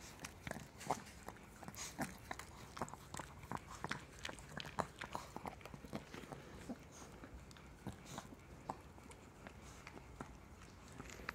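A small dog licks and snuffles wetly close by.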